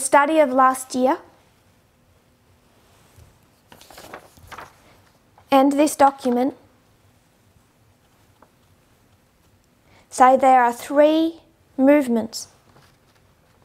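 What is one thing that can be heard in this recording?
A woman speaks calmly and clearly into a close microphone, in short phrases with pauses.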